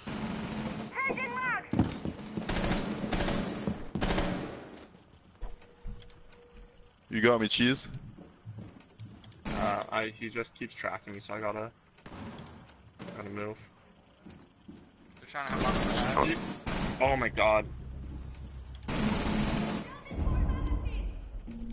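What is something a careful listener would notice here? A gun's magazine is swapped with metallic clicks.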